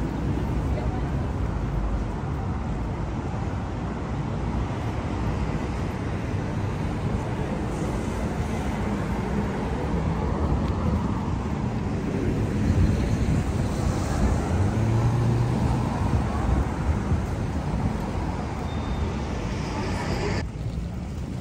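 Traffic hums steadily along a busy city street, heard outdoors.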